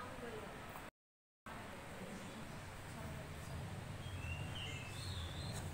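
A woman talks quietly at a distance.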